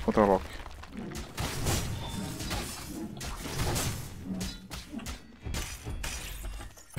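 Magic blasts crackle and thump in quick bursts during a fight.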